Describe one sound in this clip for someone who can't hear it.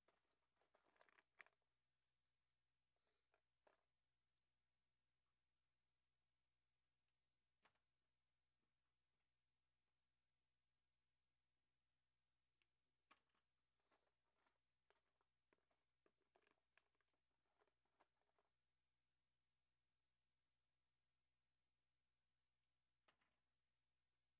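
Plastic pens clatter and click softly against each other.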